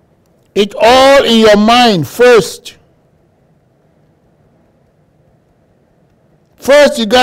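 A man speaks loudly and with emotion into a close microphone, crying out in short bursts.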